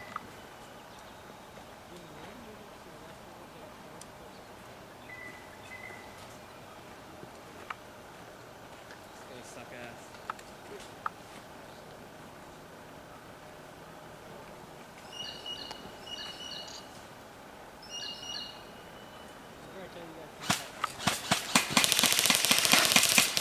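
Guns fire single sharp shots, then a rapid loud burst close by.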